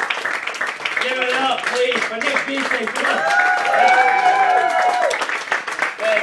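Several people sing loudly together.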